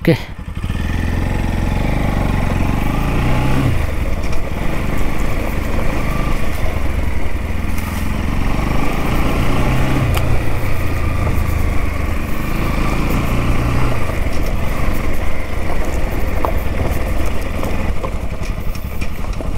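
Tyres crunch and bump over a rough dirt track.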